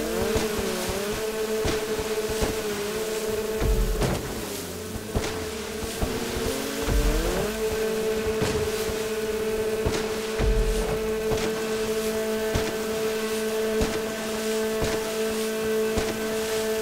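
A jet ski engine whines at full throttle, its pitch rising and dipping.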